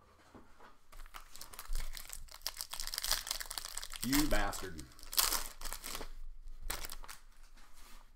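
A foil wrapper crinkles and tears as a pack is opened.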